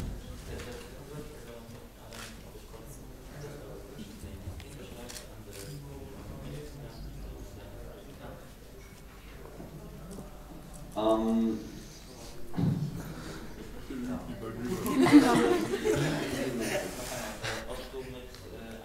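A young man speaks calmly into a microphone, heard through a loudspeaker in a room.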